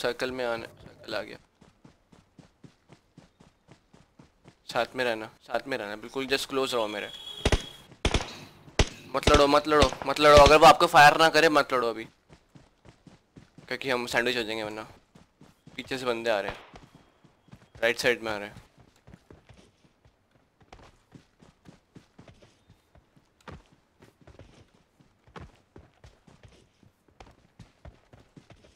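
Footsteps patter quickly on grass and dirt.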